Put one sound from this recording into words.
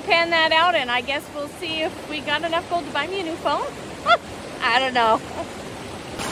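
A woman talks cheerfully close by.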